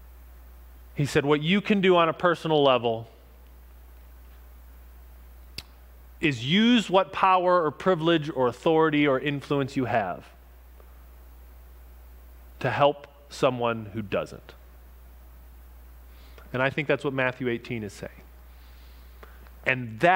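A man speaks calmly with pauses.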